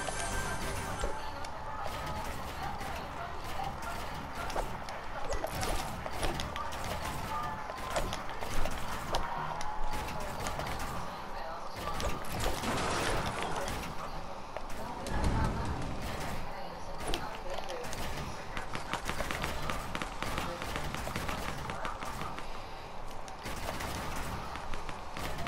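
Footsteps patter quickly.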